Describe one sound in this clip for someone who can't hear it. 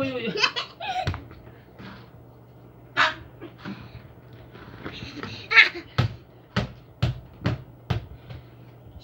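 Footsteps thump on a hard floor indoors.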